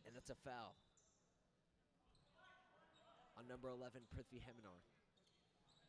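A man speaks loudly nearby in an echoing hall.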